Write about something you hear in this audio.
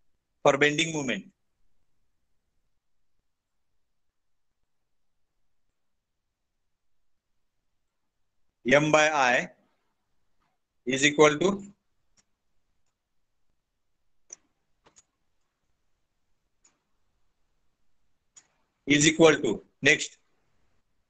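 A man speaks calmly in short phrases into a microphone, with long pauses.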